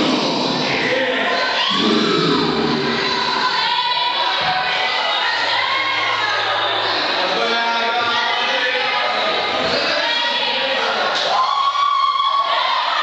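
A rock band plays loudly on a stage.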